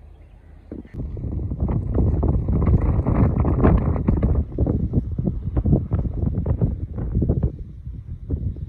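Wind gusts loudly outdoors, rumbling against the microphone.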